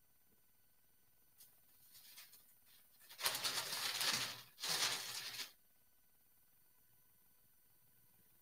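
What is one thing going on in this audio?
A heat press lid clunks as it is opened and closed.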